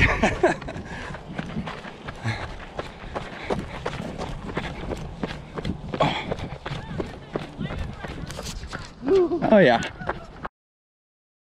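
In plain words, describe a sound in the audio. Footsteps crunch on a dirt and gravel road.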